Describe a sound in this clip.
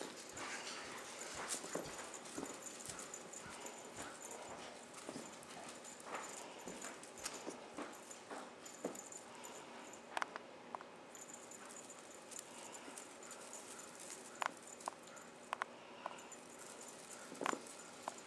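Kittens pounce and land with soft thumps on a carpet.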